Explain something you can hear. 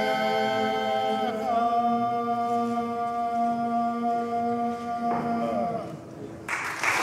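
A group of men sings a sustained chord in close harmony in a large echoing hall.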